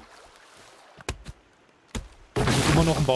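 An axe chops into a tree trunk with dull thuds.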